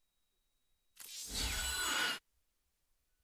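A game menu plays a loud sweeping whoosh.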